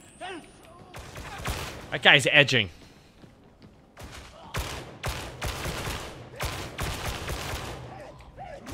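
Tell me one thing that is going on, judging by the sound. Rapid gunfire bursts in loud, sharp volleys.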